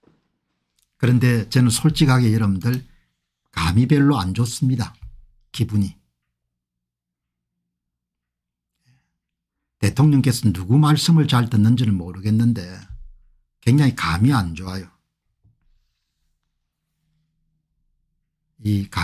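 An elderly man talks calmly and closely into a microphone, in short bursts with pauses.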